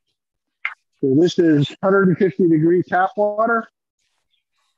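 A middle-aged man talks with animation over an online call.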